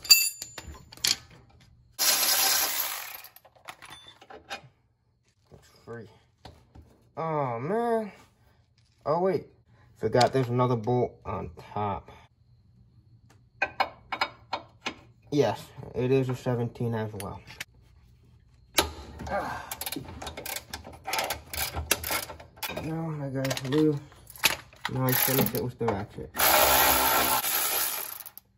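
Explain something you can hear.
Metal tools clink and knock against each other.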